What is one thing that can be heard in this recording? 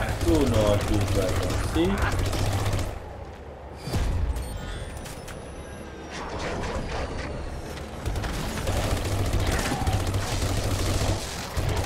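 Guns fire in short rapid bursts.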